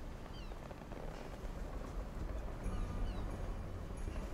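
Seagulls cry overhead.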